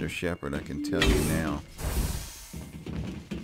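A sliding metal door hisses open.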